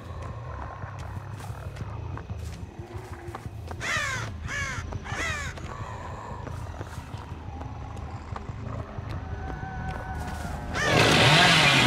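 A chainsaw engine idles with a low rumble.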